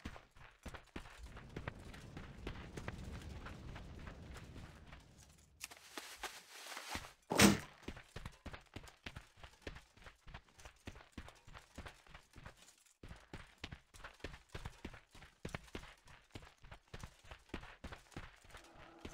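Footsteps run over dirt.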